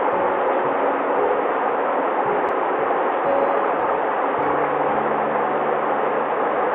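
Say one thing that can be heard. A shallow stream babbles and splashes steadily over stones.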